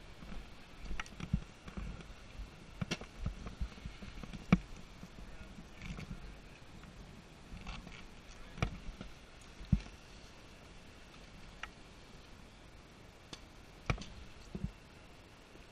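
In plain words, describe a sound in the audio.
Ski poles click and clack together.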